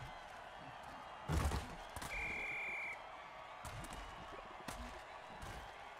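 Armoured players crash together in heavy tackles.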